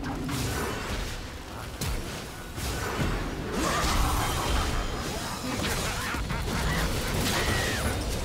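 Game characters clash in combat with sharp hits.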